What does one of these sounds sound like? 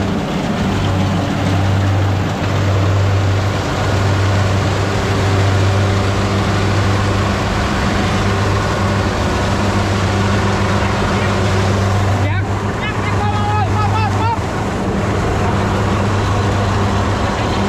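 A combine harvester engine drones loudly and steadily nearby.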